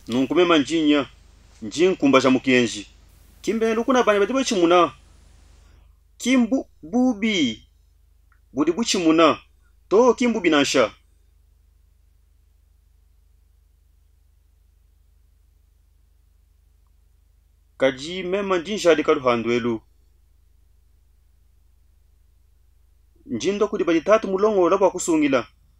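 A middle-aged man speaks with animation close to a microphone, in bursts with pauses.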